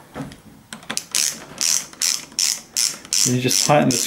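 A metal rod rattles and taps against a door lock.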